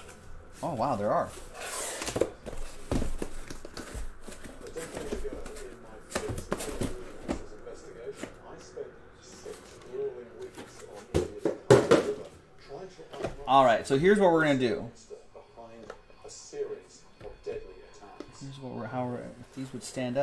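Cardboard boxes slide and scrape as hands handle them.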